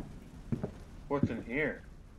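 A door handle rattles.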